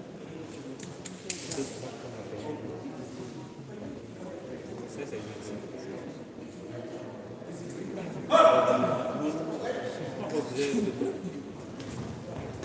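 A shuttlecock is struck with a racket, with sharp pops.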